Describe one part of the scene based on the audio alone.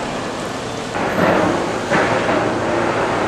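A ferry's hull bumps heavily against the quay.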